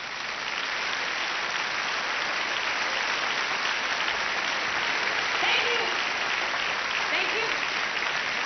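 A large audience applauds loudly in a big hall.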